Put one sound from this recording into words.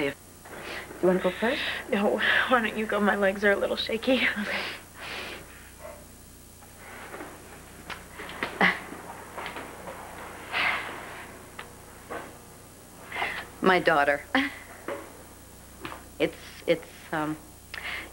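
A woman speaks calmly and confidently.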